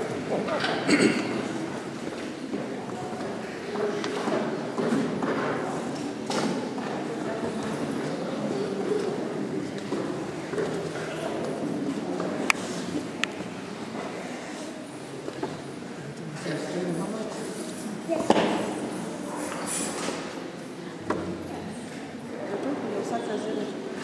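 Men and women murmur and chatter nearby in a large echoing hall.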